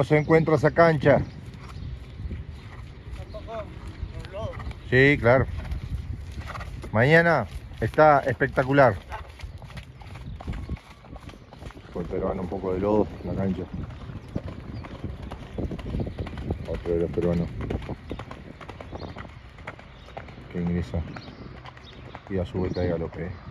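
A horse's hooves thud softly on wet sand.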